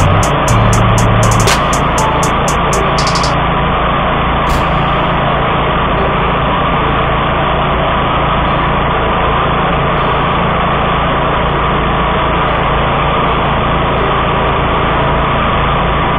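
A mower engine runs loudly and steadily close by.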